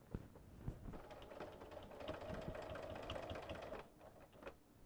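A sewing machine hums and stitches rapidly.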